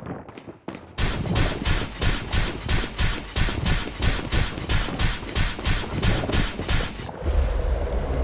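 Footsteps clank steadily on a stone floor.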